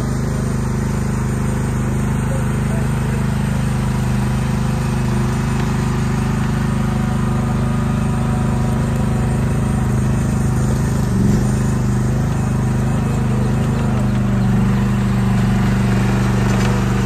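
A small diesel engine hums steadily close by.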